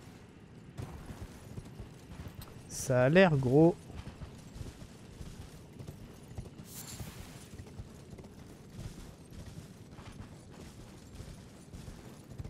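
Hooves clop steadily on hard ground.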